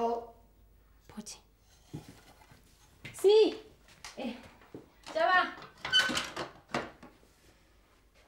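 A young woman speaks to herself in a lively voice.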